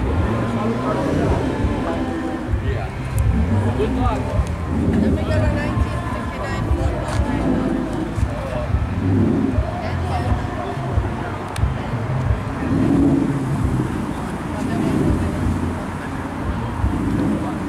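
A crowd of people chatter outdoors in the distance.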